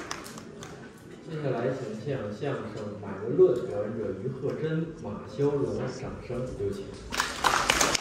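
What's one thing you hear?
A young man speaks calmly through a microphone.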